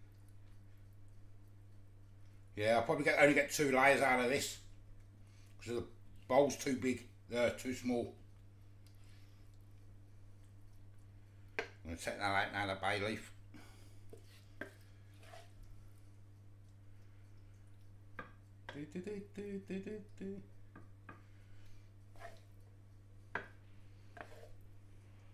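A wooden spoon scrapes and taps against a pan and a dish.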